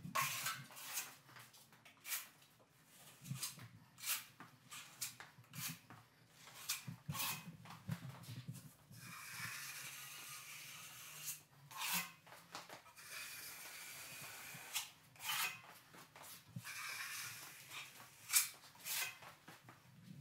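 A trowel spreads wet joint compound across drywall with a smooth scraping.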